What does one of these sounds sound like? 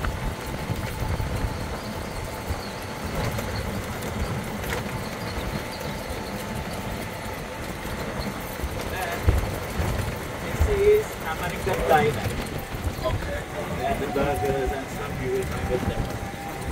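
Wind buffets the open air, rumbling low.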